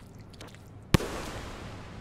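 A spear strikes with a sharp crack.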